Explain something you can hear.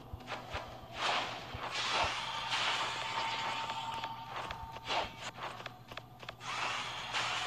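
Whooshing blasts rise and fade.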